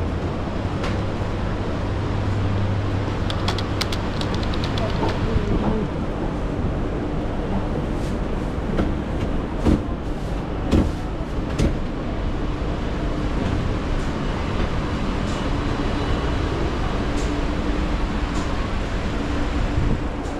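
Voices of shoppers murmur in a busy echoing indoor market.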